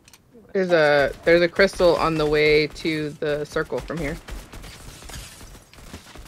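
Gunshots fire in rapid bursts in a video game.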